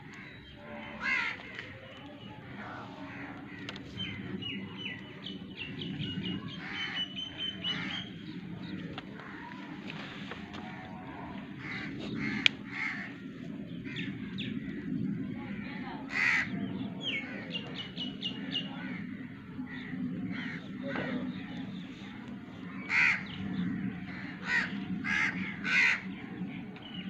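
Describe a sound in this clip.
A goat bleats close by.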